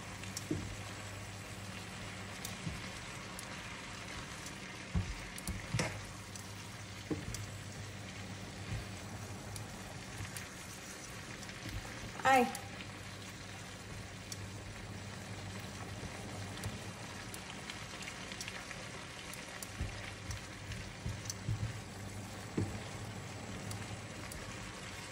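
Metal tongs clink and scrape against a pan while noodles are tossed.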